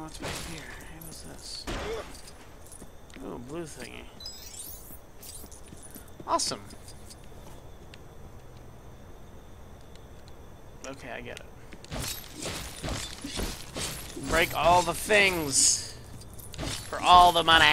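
Small coins jingle and clink in quick bursts.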